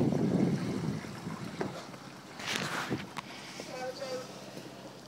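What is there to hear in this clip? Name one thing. Oars splash and dip into water in a steady rowing rhythm.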